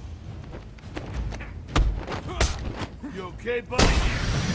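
Punches land with heavy, sharp thuds.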